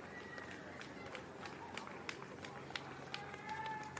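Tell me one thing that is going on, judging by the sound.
Spectators clap nearby.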